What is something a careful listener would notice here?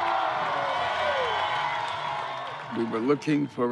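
A large audience applauds and cheers.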